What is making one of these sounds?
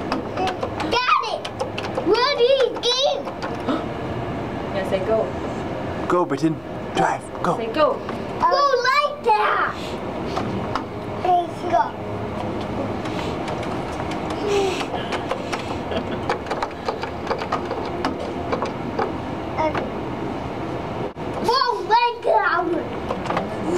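A young child babbles and squeals loudly close by.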